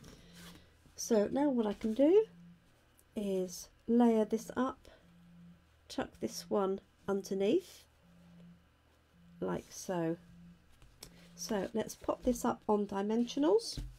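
Card paper slides and rustles on a table.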